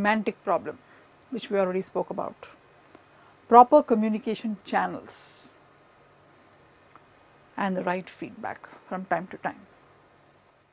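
A woman lectures calmly into a close microphone, pausing between phrases.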